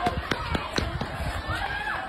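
A woman runs with quick footsteps on pavement.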